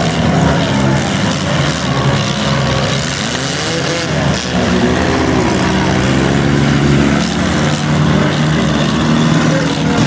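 Car engines roar and rev loudly.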